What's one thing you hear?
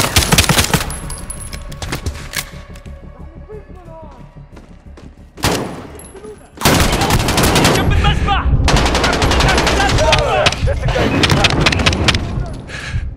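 Pistol shots fire in rapid bursts with sharp cracks.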